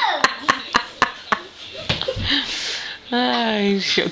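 A child's feet thump on a plastic toy bed.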